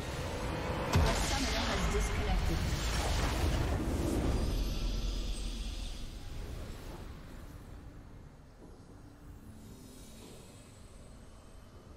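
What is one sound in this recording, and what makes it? A triumphant victory fanfare swells and fades.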